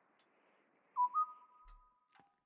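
A phone gives a short electronic beep.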